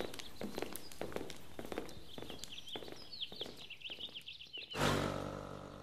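Footsteps crunch on a road as a group walks.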